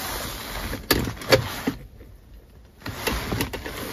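A sliding cover clicks and slides open.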